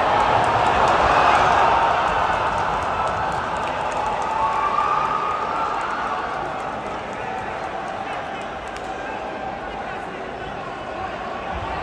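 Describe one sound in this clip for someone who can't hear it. A large crowd cheers and shouts in a big echoing arena, slowly quietening.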